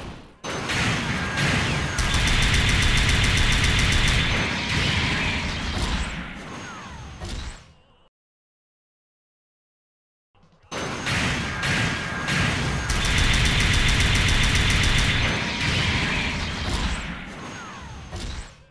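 A robot's thrusters roar as it dashes forward.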